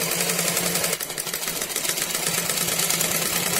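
A sewing machine whirs and stitches rapidly.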